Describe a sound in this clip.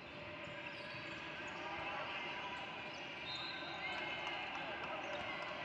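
Sneakers squeak sharply on a hardwood court in a large echoing gym.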